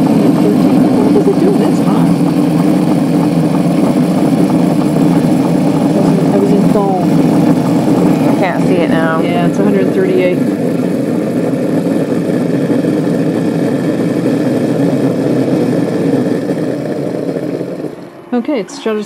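A steam wand hisses and gurgles loudly while frothing milk.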